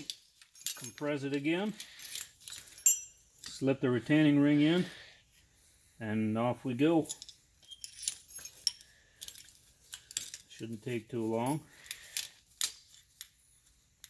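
Metal buckles clink and rattle.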